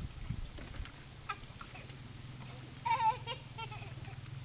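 A young girl laughs.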